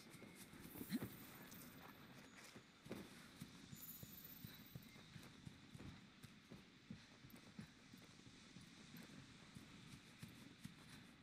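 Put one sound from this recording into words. Heavy footsteps thud steadily on soft ground.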